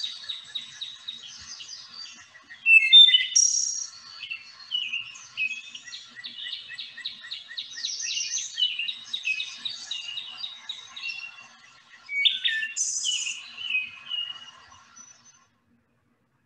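A thrush sings a fluting song through a computer speaker.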